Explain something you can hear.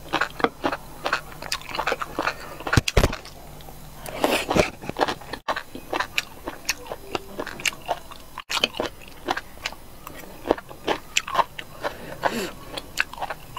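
A fork clinks against a ceramic dish.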